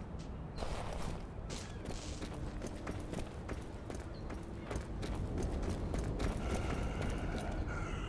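Footsteps tap on cobblestones.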